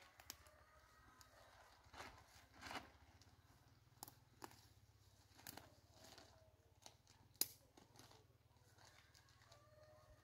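A plastic tarp rustles and crinkles as it is pulled.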